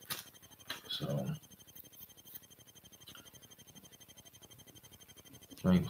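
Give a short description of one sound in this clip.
A young man speaks briefly and calmly, close to a computer microphone.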